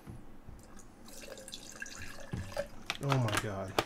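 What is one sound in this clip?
Liquid splashes and spills onto a table.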